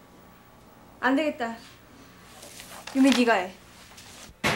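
A young woman speaks briefly nearby.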